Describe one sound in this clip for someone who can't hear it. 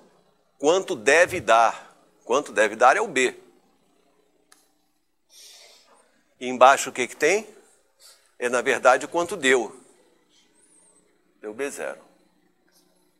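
An elderly man speaks calmly, as if lecturing.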